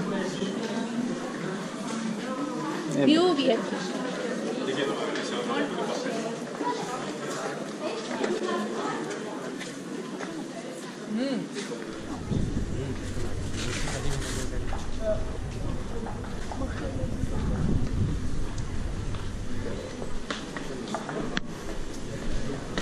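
People chatter and call out nearby in a busy outdoor crowd.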